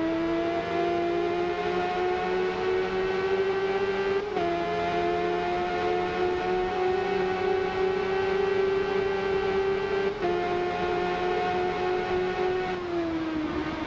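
A motorcycle engine screams at high revs, shifting up through the gears.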